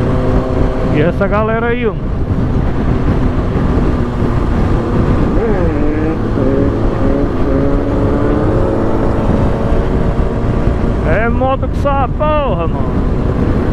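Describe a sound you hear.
A motorcycle engine revs hard, climbing in pitch through quick gear changes.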